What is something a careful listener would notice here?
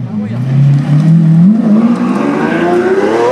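A sports car accelerates away with a rising roar.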